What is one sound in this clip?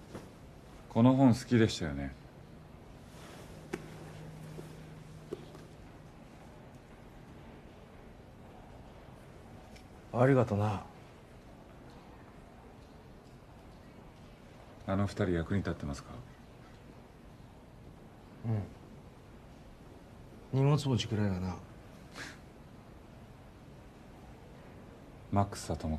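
A man speaks quietly nearby in short, separate phrases.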